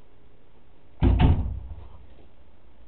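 A wooden door bumps with a dull thud.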